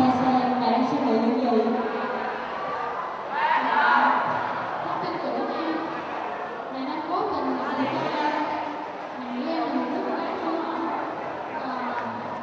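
A teenage girl speaks calmly through a microphone over loudspeakers.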